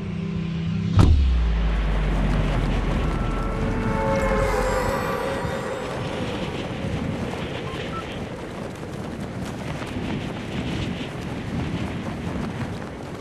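Wind rushes steadily past a falling figure.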